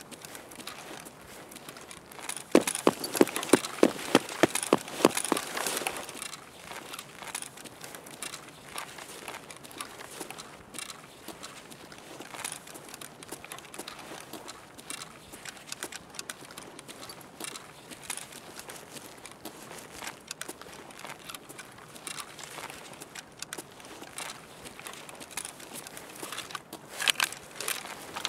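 Footsteps walk steadily on a hard floor indoors.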